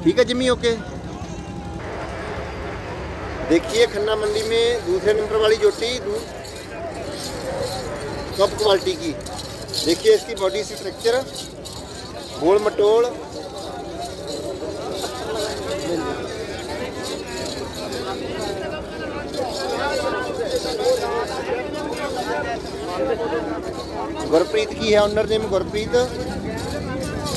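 A man speaks up close with animation.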